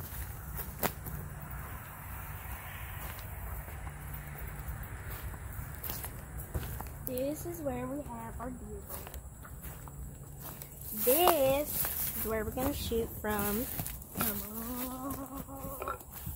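Footsteps crunch on dry leaves and pine needles.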